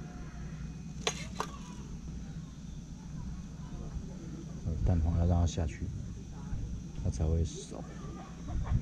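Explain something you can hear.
A utensil scrapes and clinks against a metal pot.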